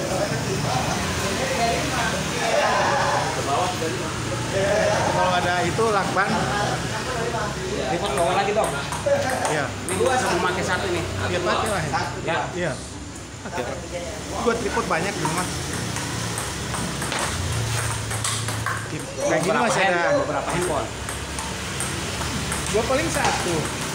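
A man talks loudly nearby.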